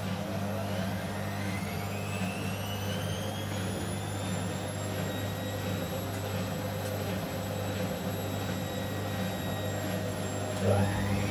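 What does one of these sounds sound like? A washing machine motor whines, rising in pitch as it speeds up.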